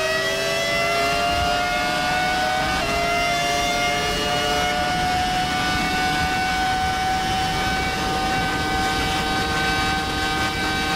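A racing car engine screams at high revs, rising in pitch and briefly dropping as it shifts gear.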